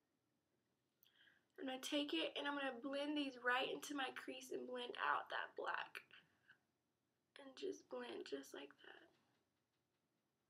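A young woman talks casually, close to a microphone.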